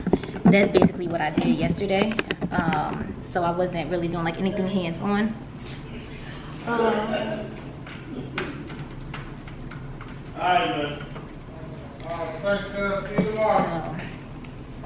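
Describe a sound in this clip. A young woman talks casually close to the microphone.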